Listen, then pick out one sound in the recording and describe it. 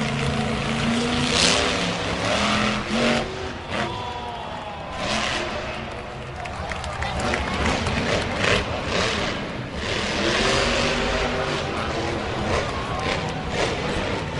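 A monster truck engine roars loudly.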